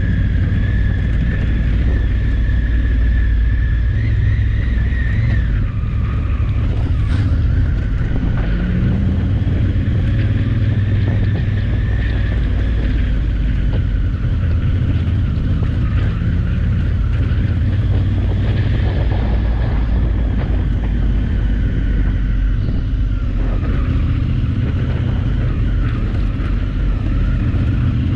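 A motorcycle engine drones steadily up close, its pitch shifting with the throttle.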